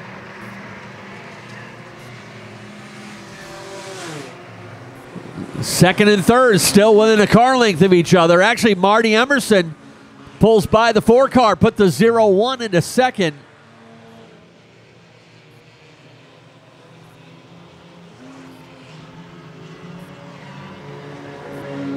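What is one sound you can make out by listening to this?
Race car engines drone around a track outdoors.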